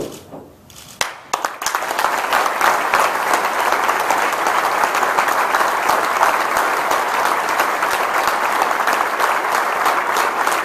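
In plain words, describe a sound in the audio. A man claps his hands loudly and steadily.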